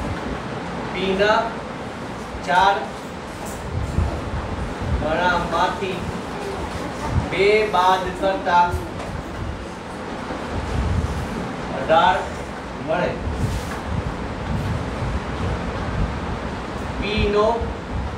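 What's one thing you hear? A marker squeaks on a whiteboard in short bursts.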